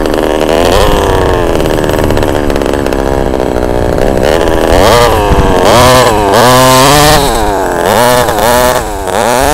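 A small model car engine whines and revs up and down.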